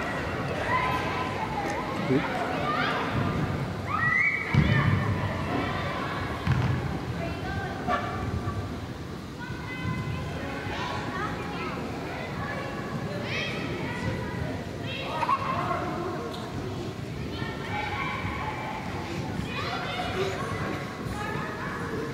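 Young women shout and call to each other across a large echoing indoor hall.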